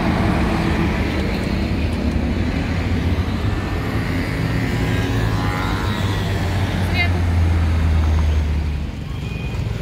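Cars drive past on a busy street.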